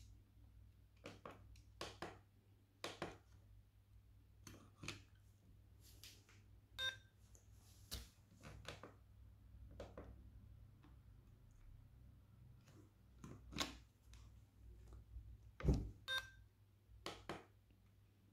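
A plastic button clicks under a finger.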